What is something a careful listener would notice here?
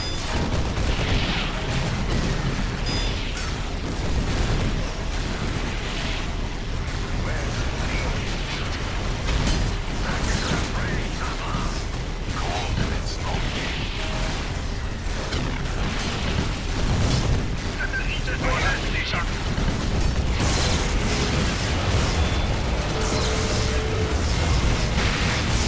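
Gunfire and explosions crackle and boom in a game battle.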